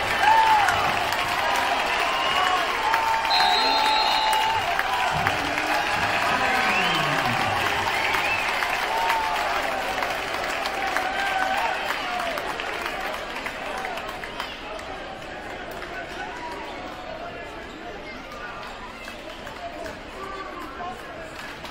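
A large crowd cheers and shouts in an echoing gym, slowly dying down.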